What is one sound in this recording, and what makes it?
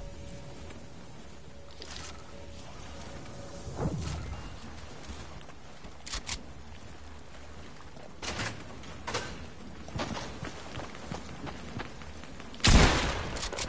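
Game footsteps clatter on metal and stone.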